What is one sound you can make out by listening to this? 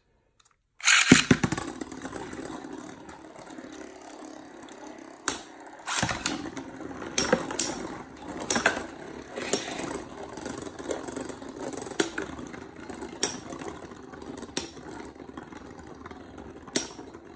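A spinning top whirs around a plastic dish.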